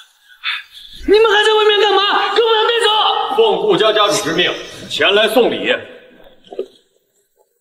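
A man shouts angrily, close by.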